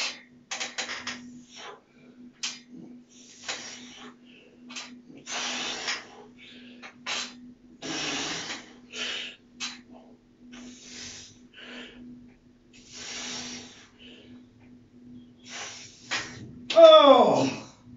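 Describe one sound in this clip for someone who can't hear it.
A man exhales hard in short bursts while exercising, close by.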